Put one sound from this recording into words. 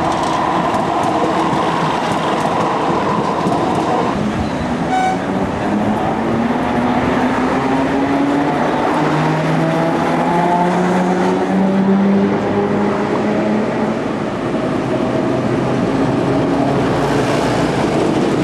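A tram rolls past close by, its wheels rumbling on the rails.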